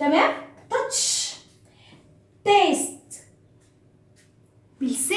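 A young woman speaks clearly and with animation, close by.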